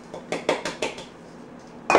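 A spoon taps against a bowl.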